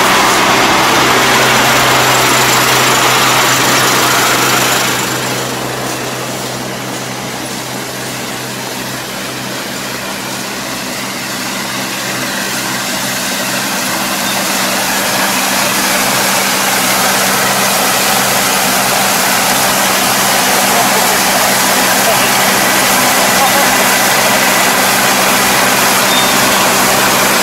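A harvesting machine's engine drones steadily, growing quieter and then louder again as it comes close.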